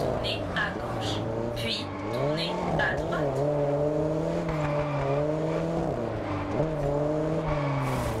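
A sports car engine revs and roars, its pitch rising and dropping as it shifts gears.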